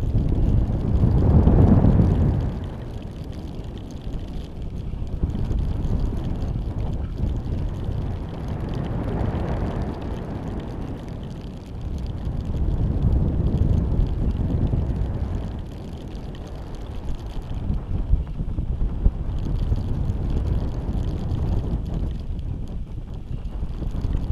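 Wind rushes and buffets past loudly in gusts.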